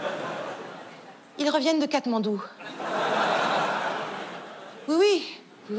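An audience laughs.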